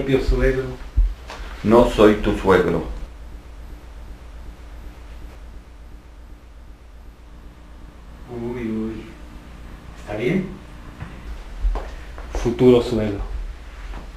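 A man speaks in a low, calm voice nearby.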